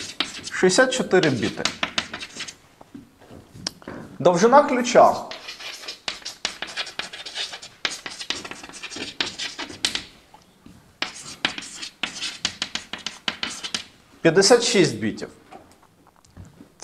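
Chalk taps and scrapes rapidly on a blackboard.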